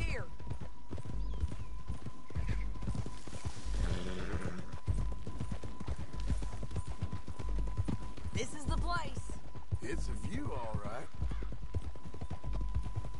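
Horses' hooves thud steadily on dry ground at a trot.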